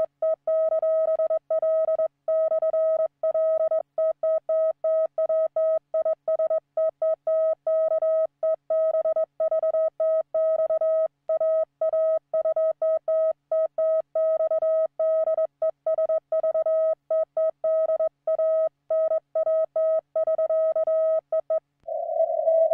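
A Morse key taps out code as short and long steady beeps.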